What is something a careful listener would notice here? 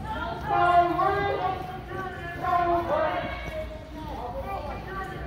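A group of people sings together outdoors.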